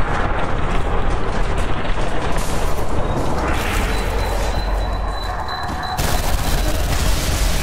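Guns fire in rapid bursts, loud and close.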